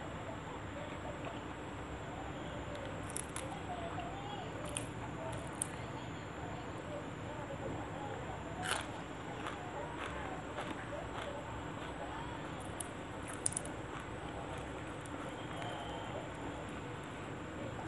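Fresh leaves snap and rustle as a woman picks them.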